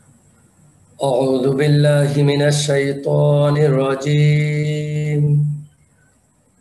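A man chants in a slow, melodic voice over an online call.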